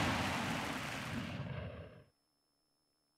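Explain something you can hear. A heavy impact booms and fades out.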